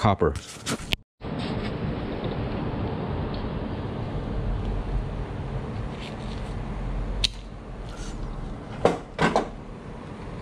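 Pliers snip through a wire with a sharp click.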